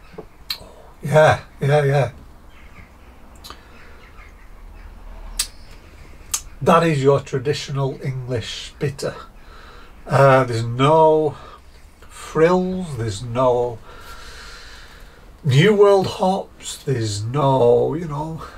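A middle-aged man talks calmly and clearly, close by.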